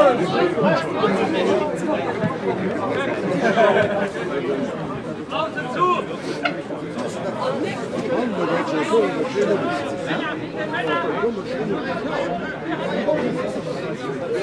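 Men shout to each other outdoors on a sports field.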